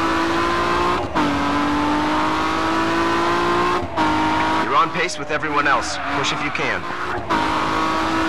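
Exhaust pops and crackles from a car.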